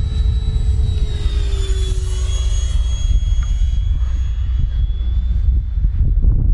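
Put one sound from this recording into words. A model jet whooshes past with a high whine that slowly fades into the distance.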